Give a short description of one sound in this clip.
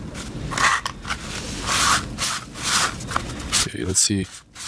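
A paper tissue rustles and crinkles.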